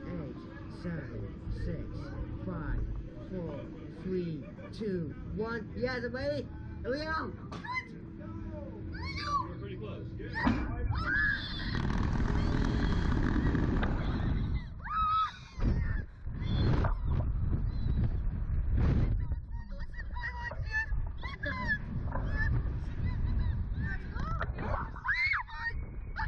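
A young woman laughs and screams close by.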